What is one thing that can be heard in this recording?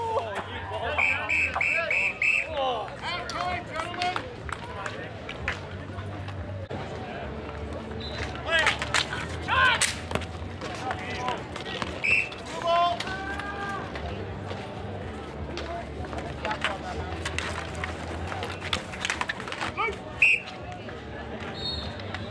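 Young men call out to each other outdoors during a game.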